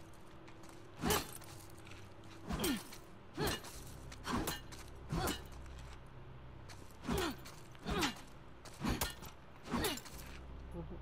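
Glass is struck hard and shatters several times.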